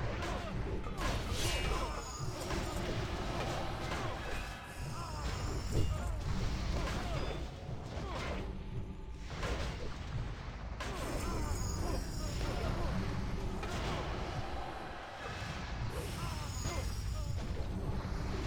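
Weapons clash and strike repeatedly in a fierce fight.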